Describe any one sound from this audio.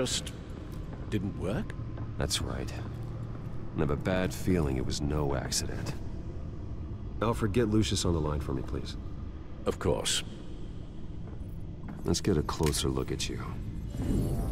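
A man answers in a low, calm voice.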